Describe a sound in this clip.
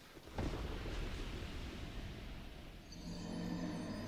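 Sea waves wash and roar.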